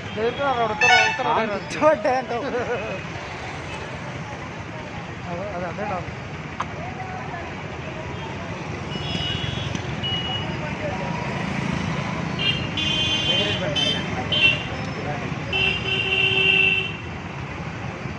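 Motorcycle engines putter past.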